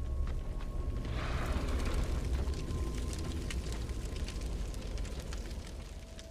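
A fire crackles and roars nearby.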